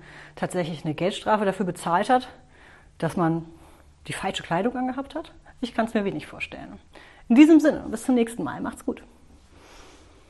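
A woman speaks calmly and warmly into a nearby microphone.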